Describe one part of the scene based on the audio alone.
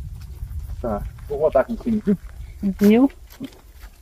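A middle-aged woman talks nearby.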